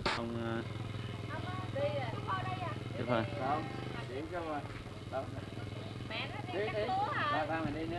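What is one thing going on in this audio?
Several men talk calmly nearby outdoors.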